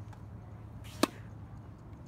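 A tennis racket strikes a ball with a sharp pock.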